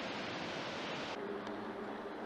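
A waterfall roars.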